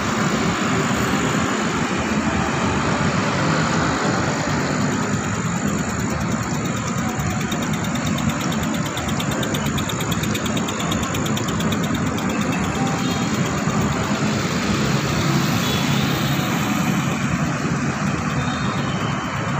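A motorbike engine buzzes past.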